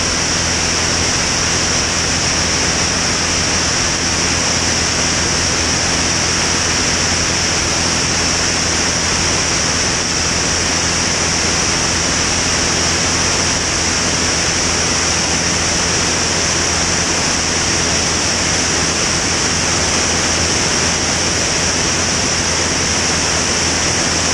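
Wind rushes hard past the plane.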